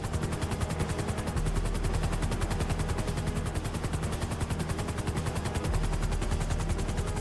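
Helicopter rotor blades thump rapidly and steadily overhead.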